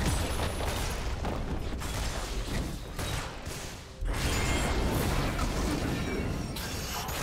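Fiery magic spells whoosh and crackle in quick bursts.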